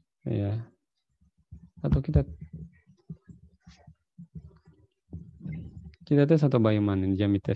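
A man speaks and chants through an online call microphone.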